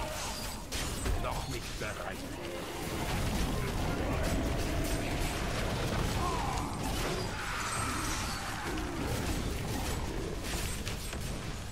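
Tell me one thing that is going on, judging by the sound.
Magic blasts crackle and whoosh in rapid bursts.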